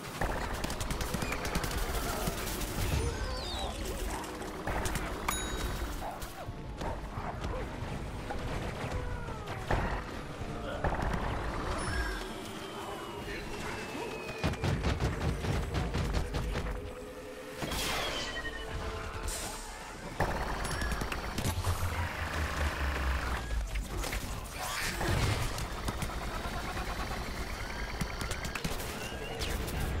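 Game guns fire in rapid bursts.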